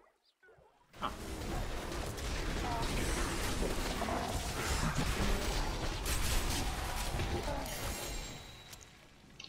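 Magic blasts crackle and boom in a noisy fight.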